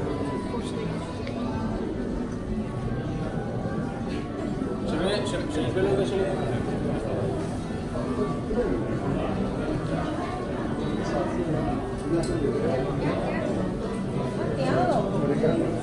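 A crowd of people murmurs and chatters indoors.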